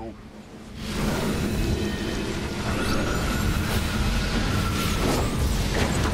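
Energy beams zap and hum.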